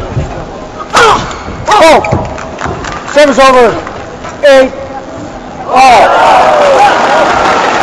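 Young men shout loudly in an echoing hall.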